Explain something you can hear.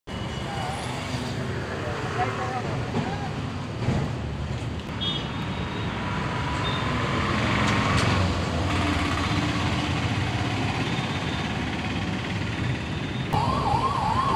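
A motorbike passes by.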